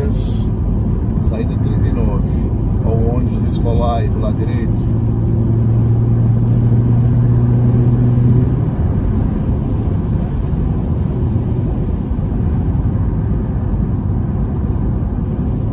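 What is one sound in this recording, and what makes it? A car's tyres roar steadily on a highway.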